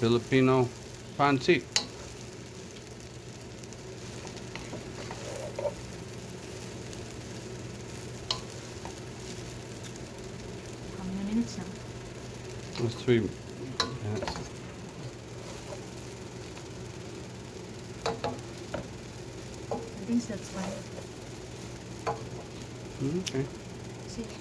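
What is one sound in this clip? Utensils scrape and clack against a pan.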